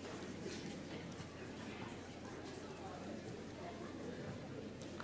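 An audience murmurs and chatters quietly in a large hall.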